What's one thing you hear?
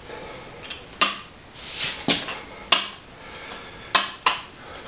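Metal parts clank and knock sharply now and then.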